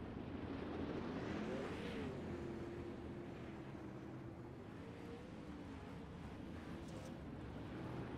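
Race car engines roar and drone.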